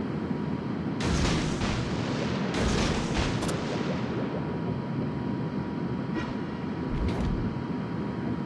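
Shells crash into the water nearby with loud splashes.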